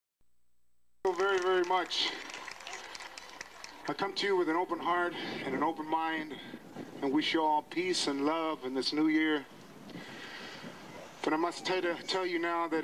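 A man speaks with animation through a loudspeaker outdoors.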